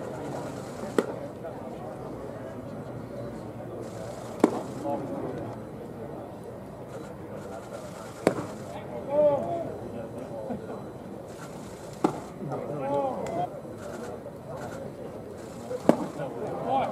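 A baseball smacks into a catcher's mitt with a sharp pop, again and again.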